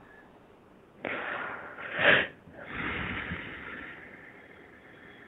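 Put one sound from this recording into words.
A woman breathes in deeply and slowly.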